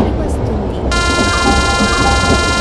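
A train horn sounds loudly.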